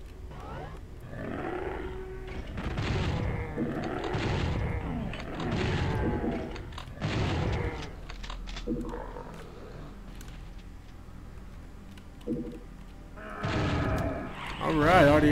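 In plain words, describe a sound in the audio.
A shotgun fires loud booming blasts several times.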